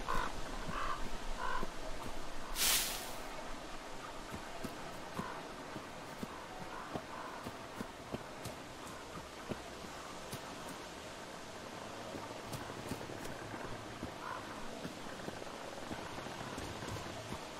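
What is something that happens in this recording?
Footsteps crunch on dry leaves and gravel.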